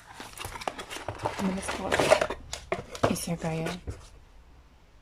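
Cardboard packaging rustles and scrapes.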